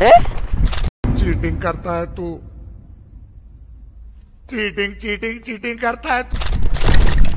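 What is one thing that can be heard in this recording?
A man shouts angrily at close range.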